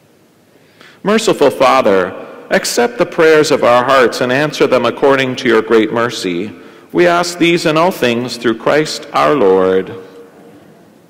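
A man chants in a melodic voice through a microphone, in an echoing hall.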